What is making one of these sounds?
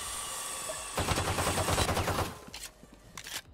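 A pistol fires a rapid burst of shots.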